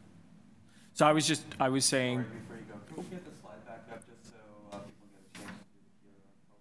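A man speaks through a microphone in a room with a slight echo.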